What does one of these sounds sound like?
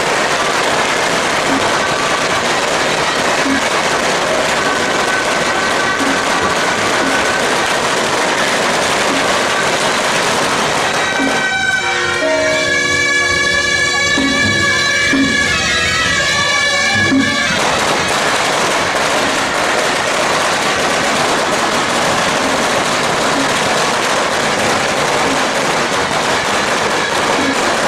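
Cymbals and gongs clash loudly and steadily.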